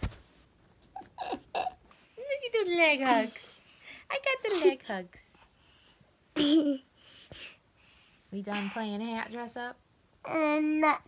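A young boy talks and squeals playfully close by.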